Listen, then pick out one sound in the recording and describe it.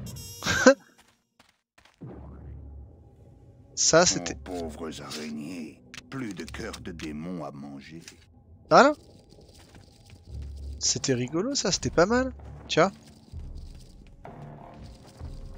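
A young man talks with animation through a microphone.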